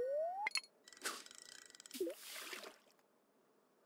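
A fishing line is cast with a swish and a plop.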